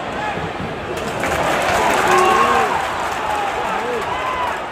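A stadium crowd cheers and roars, growing louder.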